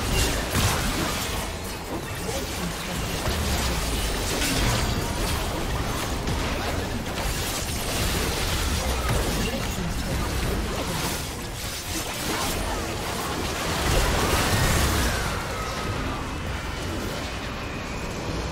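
Game spell effects crackle and blast in quick bursts.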